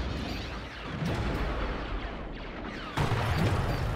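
Energy blasts burst and crackle in a battle.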